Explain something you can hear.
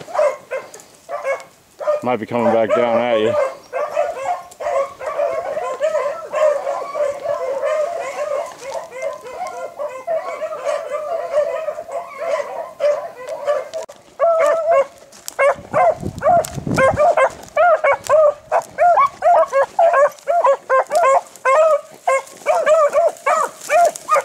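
A pack of hounds bays and yelps loudly and excitedly, close by outdoors.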